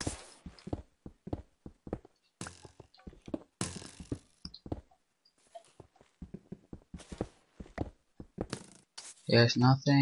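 A pickaxe chips repeatedly at stone blocks.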